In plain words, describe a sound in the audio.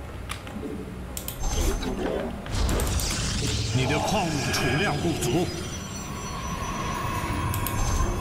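A game's buildings warp in with a shimmering electronic hum.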